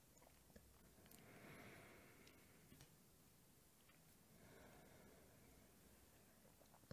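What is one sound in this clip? A man breathes in and out slowly and deeply.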